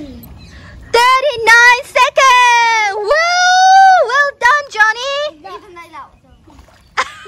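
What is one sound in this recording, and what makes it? A young girl shouts excitedly close by.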